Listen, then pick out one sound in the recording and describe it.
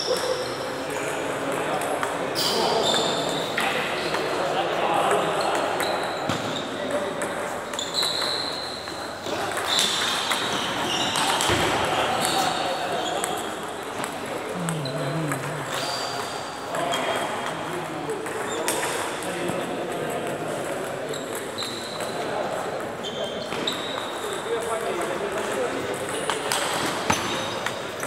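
Men chatter in the background of an echoing hall.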